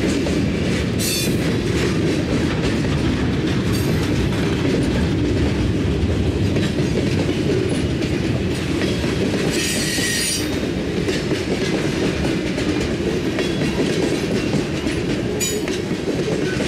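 Steel wheels squeal and screech on the rails.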